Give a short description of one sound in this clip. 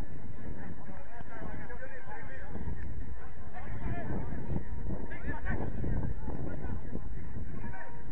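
Distant players shout to each other across an open pitch.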